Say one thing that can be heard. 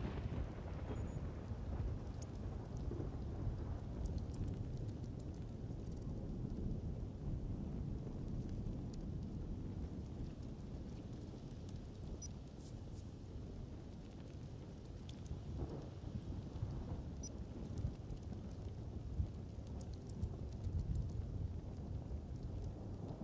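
Wind and rain hiss steadily outdoors.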